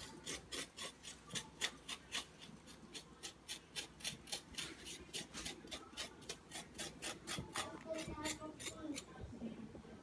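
A spoon scrapes rapidly against melon flesh.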